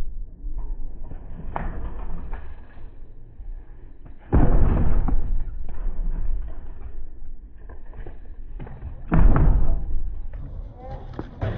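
Bicycle tyres roll and grind over wooden boards.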